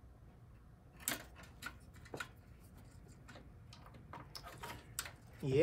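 Plastic power connectors click and rattle as hands handle them.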